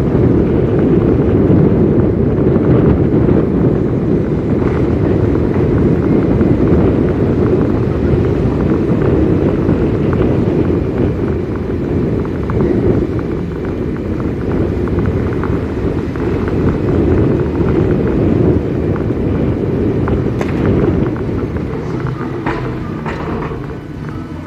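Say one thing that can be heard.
Tyres rumble steadily on a road.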